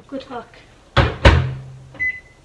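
A window bangs and clunks as it is pushed open and latched.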